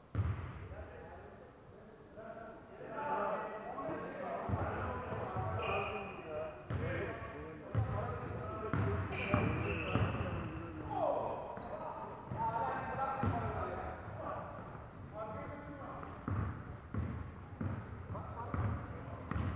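Basketballs bounce on a wooden floor with dull thumps.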